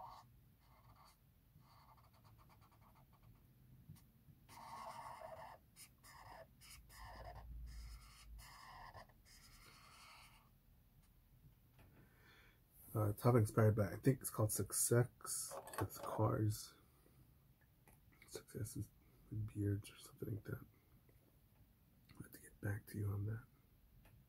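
A marker squeaks and rubs across paper.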